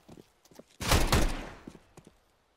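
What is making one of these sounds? A rifle fires a loud burst of gunshots that echo briefly.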